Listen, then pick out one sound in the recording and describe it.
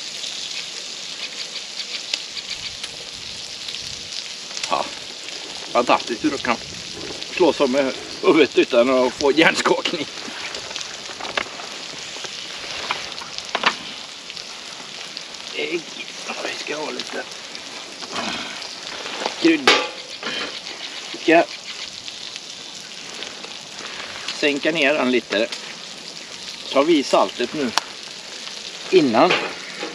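Meat sizzles on a hot griddle.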